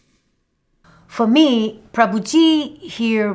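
A middle-aged woman speaks calmly into a close microphone.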